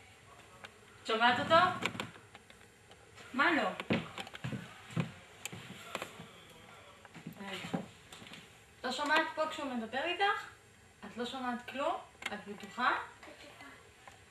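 A woman talks calmly and warmly, close by.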